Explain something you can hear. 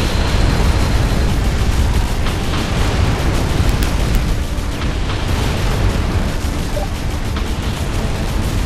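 Laser towers fire with crackling electric zaps.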